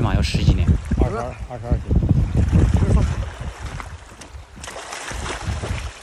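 Small waves lap at a stony shore.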